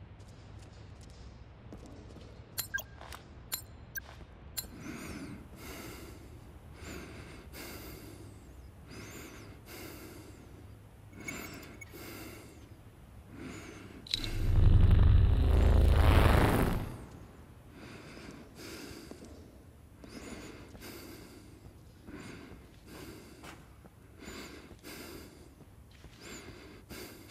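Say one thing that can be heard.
Footsteps crunch slowly on a gritty floor.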